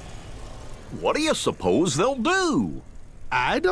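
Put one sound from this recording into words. A man with a goofy cartoon voice asks a question.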